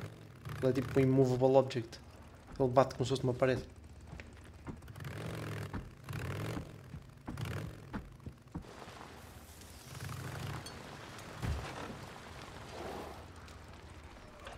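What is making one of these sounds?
A motorcycle engine rumbles.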